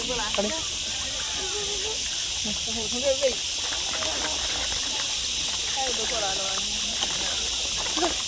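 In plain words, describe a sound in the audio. A child talks excitedly nearby.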